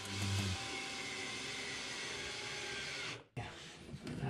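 A power drill whirs steadily as it drives a screw.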